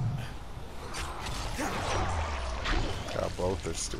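A heavy weapon thuds wetly into a body.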